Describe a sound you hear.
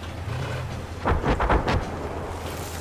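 An anti-aircraft gun fires a quick burst of shots.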